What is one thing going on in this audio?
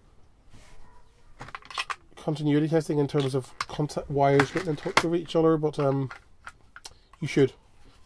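Batteries clack as they are pushed into place.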